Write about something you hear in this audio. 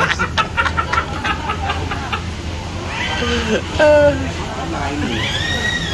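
Two men laugh together close by.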